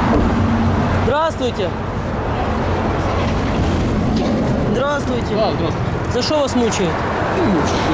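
A man speaks close by inside the car.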